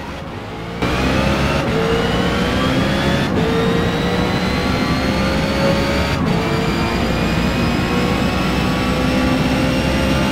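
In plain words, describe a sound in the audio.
A racing car engine roars loudly, rising in pitch as it accelerates through quick gear shifts.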